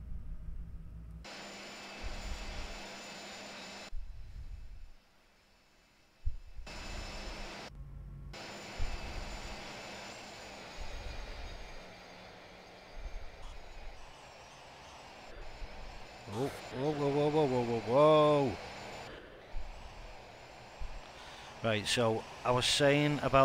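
A jet engine whines steadily.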